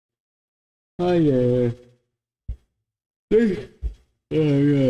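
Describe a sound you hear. A man nearby calls out with loud, drawn-out vocal sounds.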